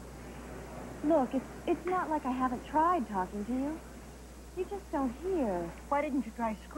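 A young woman speaks eagerly, close by.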